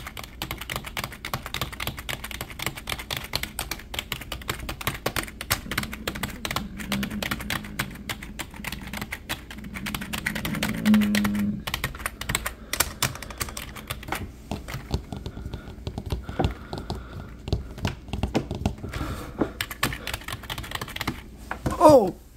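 Fingers tap rapidly on keyboard keys.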